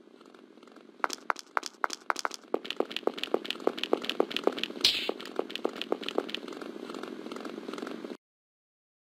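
Footsteps tap quickly on a stone floor.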